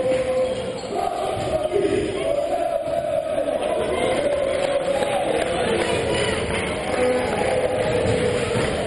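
A crowd chants and cheers in a large echoing hall.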